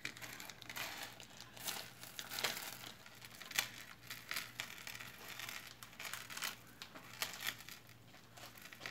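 Glass beads clink and rattle softly as a hand handles a beaded strand.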